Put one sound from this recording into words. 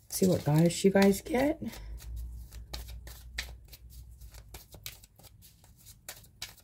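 Playing cards shuffle and tap softly.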